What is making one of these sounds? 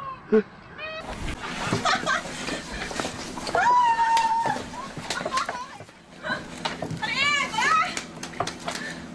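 Panda cubs tussle and scuffle on dry ground.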